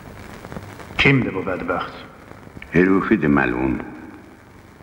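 An elderly man speaks gravely and firmly, close by.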